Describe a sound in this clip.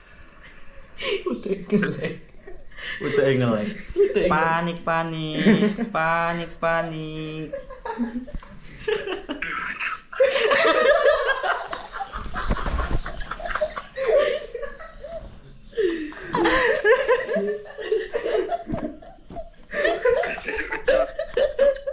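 Young men talk and laugh loudly close by.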